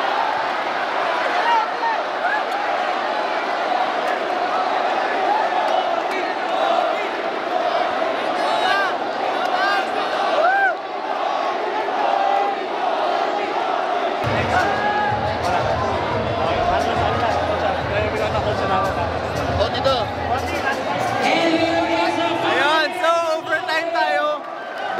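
A large crowd cheers and shouts in a big echoing hall.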